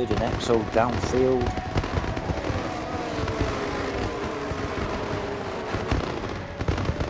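A racing car engine roars past at high speed, its pitch sliding lower as it goes by.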